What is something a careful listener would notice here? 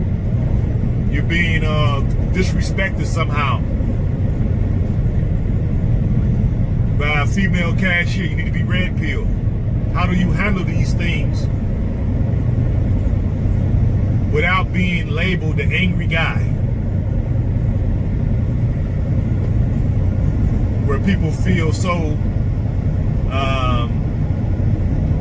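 A car engine hums and tyres rumble steadily on a highway.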